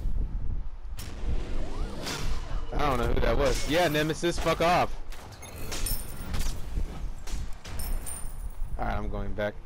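Magic blasts and weapon strikes crackle and clash in a fight.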